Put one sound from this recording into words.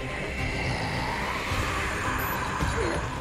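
A man laughs menacingly and loudly.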